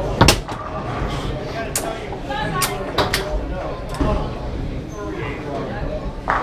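A foosball ball clacks sharply against plastic players and the table walls.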